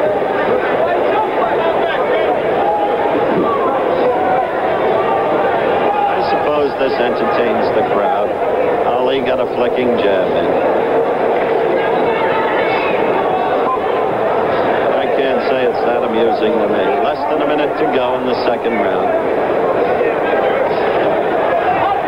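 A large crowd cheers and murmurs loudly in a big echoing arena.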